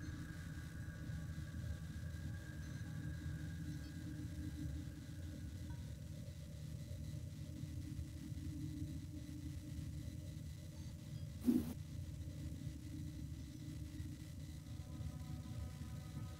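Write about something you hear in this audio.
A spaceship's engines hum low and steady.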